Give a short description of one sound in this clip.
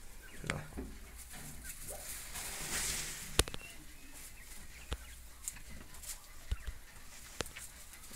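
A quail pecks at a feeder with sharp taps.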